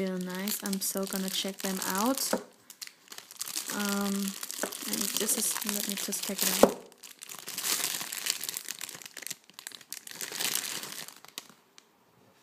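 A plastic bag crinkles and rustles as it is unwrapped by hand.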